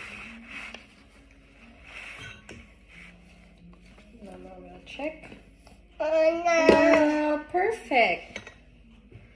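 A toddler babbles and talks.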